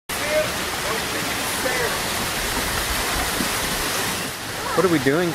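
A small waterfall splashes steadily onto rocks.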